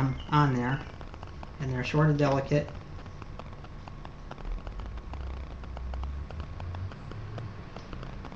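Paper crinkles and rustles in a man's hands.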